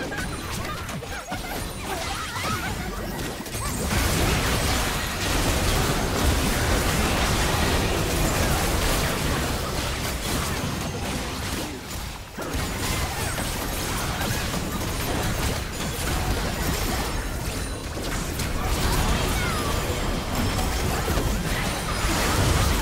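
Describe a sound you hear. Magic blasts crackle and boom in a busy fight.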